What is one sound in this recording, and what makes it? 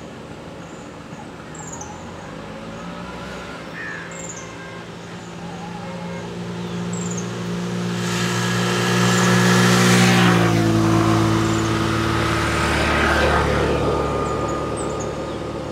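An Asian elephant tears up grass with its trunk.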